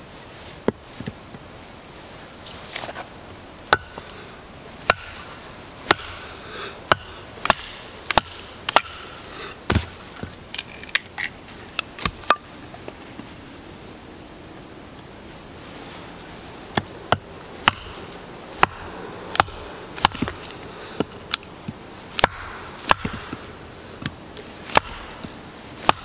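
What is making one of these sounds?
A wooden mallet knocks a wedge into a log again and again, with sharp cracks.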